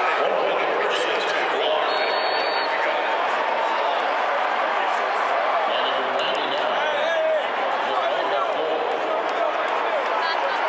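A large crowd cheers and shouts loudly in a huge echoing stadium.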